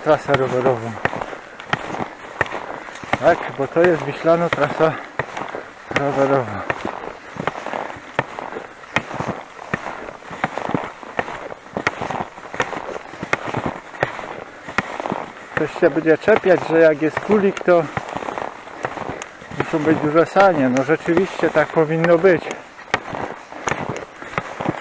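Footsteps crunch steadily through fresh snow.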